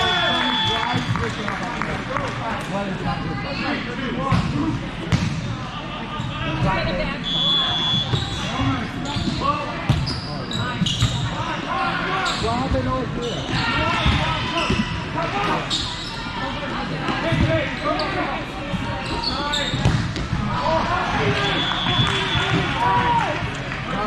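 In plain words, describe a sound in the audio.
Many voices chatter and shout in a large echoing hall.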